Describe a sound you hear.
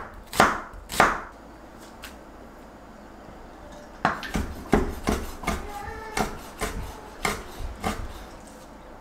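A knife chops vegetables on a cutting board with sharp knocks.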